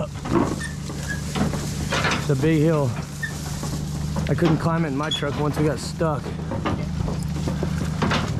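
A metal frame rattles and clanks over bumps.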